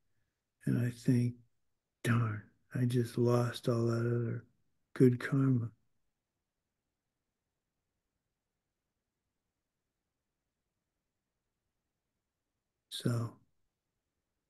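An older man speaks calmly through a microphone on an online call.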